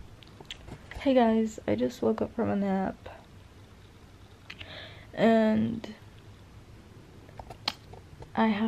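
A young woman talks casually and close up.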